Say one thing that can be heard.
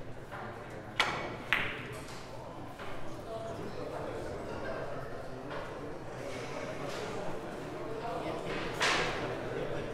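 A cue tip strikes a billiard ball with a sharp tap.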